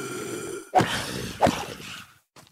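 A sword strikes a creature with sharp, heavy thuds.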